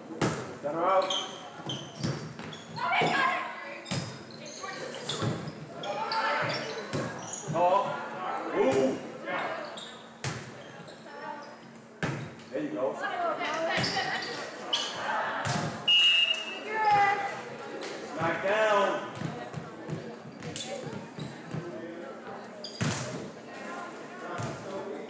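Young women shout and call out to each other across the court.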